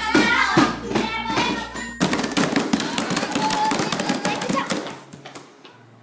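Young girls chatter and shout noisily together.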